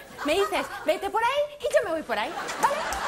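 A young woman speaks animatedly through a microphone.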